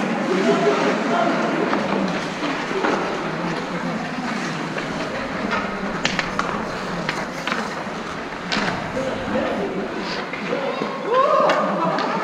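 Skate blades scrape across the ice.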